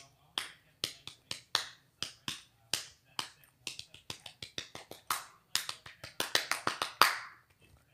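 A boy makes quick popping and clicking sounds with his mouth, close by.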